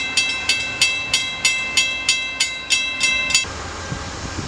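A railroad crossing bell rings.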